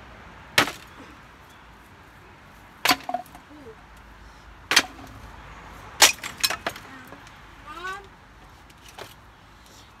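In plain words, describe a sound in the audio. Wooden boards and tools knock and clatter together.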